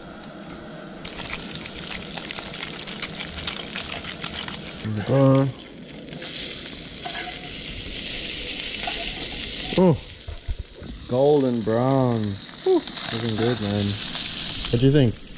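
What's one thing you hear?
Fish sizzles in a hot frying pan.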